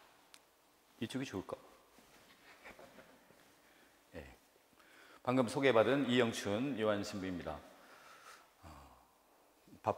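A middle-aged man speaks calmly into a microphone through loudspeakers in a large echoing hall.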